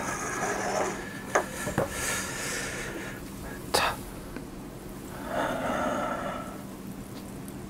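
A young man talks close to a microphone with animation.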